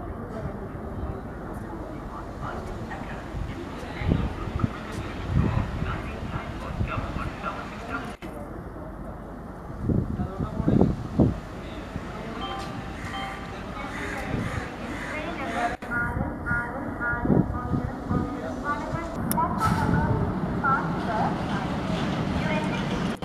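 A diesel locomotive rumbles slowly into an outdoor station.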